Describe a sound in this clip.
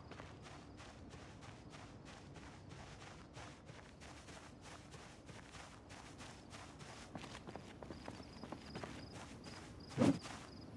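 Footsteps walk steadily on hard ground.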